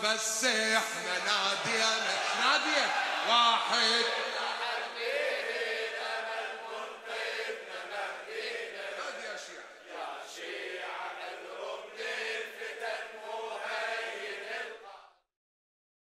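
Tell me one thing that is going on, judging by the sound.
A man chants loudly and with feeling into a microphone in a large echoing hall.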